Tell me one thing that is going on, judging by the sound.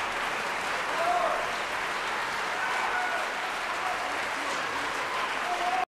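A man speaks into a microphone, heard over loudspeakers in a large hall.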